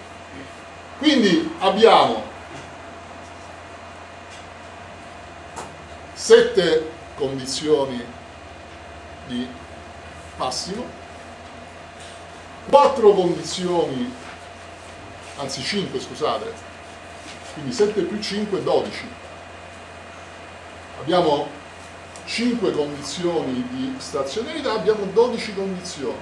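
A middle-aged man lectures calmly, with pauses between phrases.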